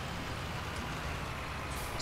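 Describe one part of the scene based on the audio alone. A tractor engine idles.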